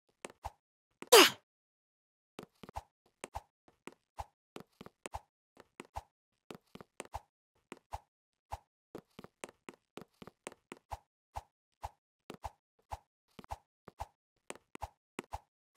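Light footsteps patter quickly and steadily.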